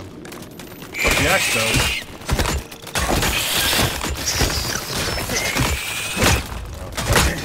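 A giant spider screeches.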